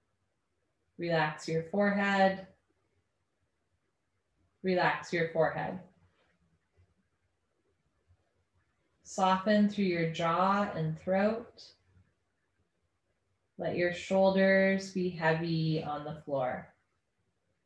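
A woman speaks calmly and softly, with pauses.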